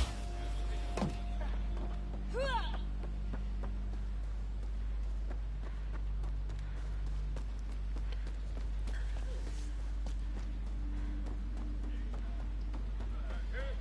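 Footsteps run quickly over hard ground and sand.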